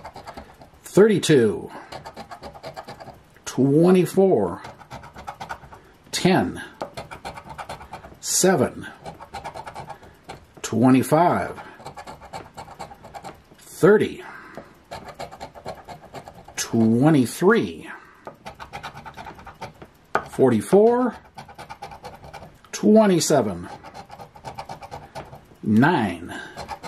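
A coin scratches and rasps across a card.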